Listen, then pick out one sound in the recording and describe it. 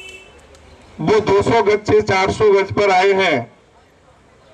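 A man speaks loudly into a microphone over a loudspeaker, with a booming outdoor echo.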